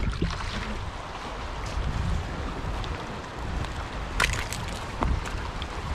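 A river rushes over rocks nearby.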